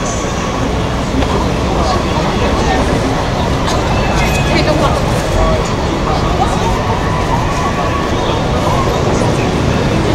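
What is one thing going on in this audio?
Traffic rumbles past on a busy street.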